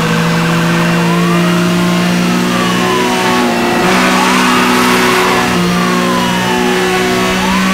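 A police siren wails.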